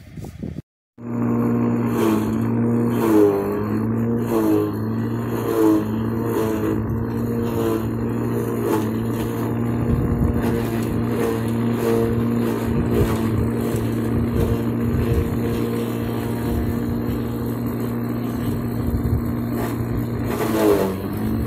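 A small forage chopper motor hums steadily.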